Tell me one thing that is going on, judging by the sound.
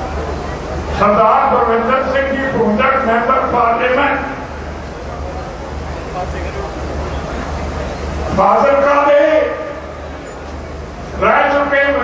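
An elderly man speaks forcefully into a microphone, heard over loudspeakers.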